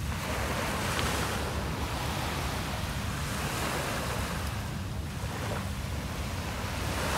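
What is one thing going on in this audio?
Small waves wash up onto a sandy shore and fizz as they draw back.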